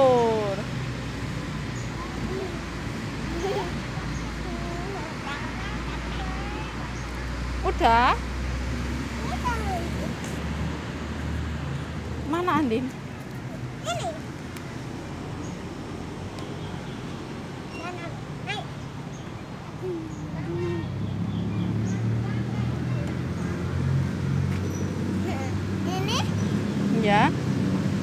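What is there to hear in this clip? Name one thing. A young girl speaks and babbles nearby.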